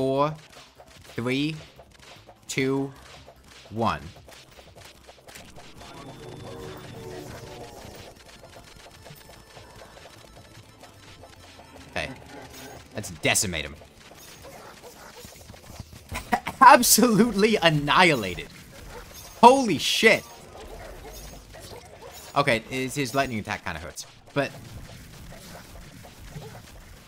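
Magic weapons zap and crackle in rapid bursts.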